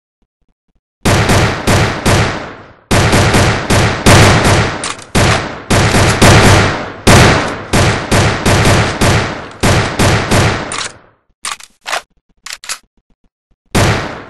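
Pistol shots fire in quick succession and echo.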